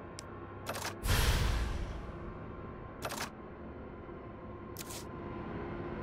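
Short game menu clicks sound now and then.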